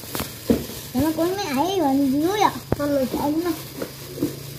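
A young child talks in a high, lively voice close by.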